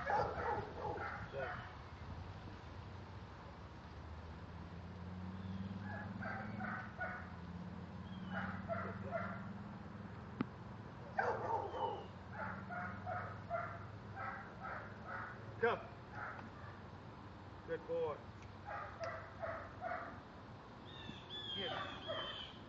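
A man gives short, firm commands to a dog nearby, outdoors.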